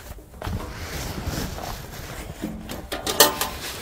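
Plastic sheeting rustles and crinkles close by.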